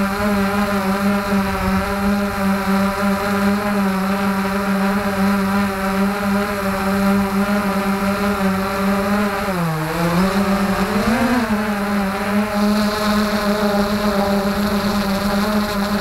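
Drone propellers hum steadily close by, briefly dipping and rising in pitch.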